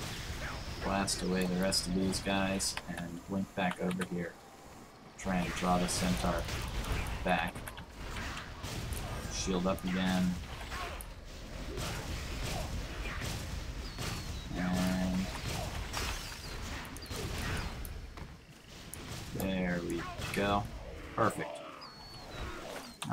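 Magic spells whoosh and burst in a fight.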